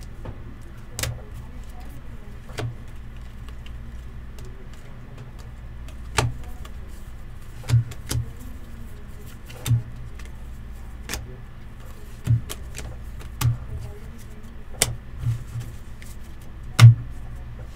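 Stiff cards tap and click against each other.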